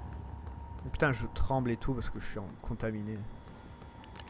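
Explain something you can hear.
A man speaks briefly and calmly into a microphone, close by.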